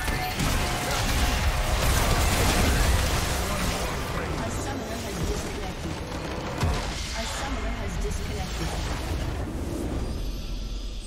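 Game spell effects crash and blast in a fight.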